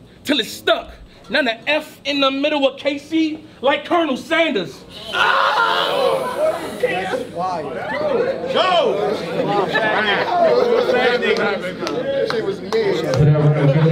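A man raps loudly and with energy in a room that echoes.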